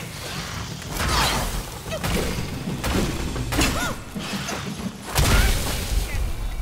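A huge creature screeches and hisses.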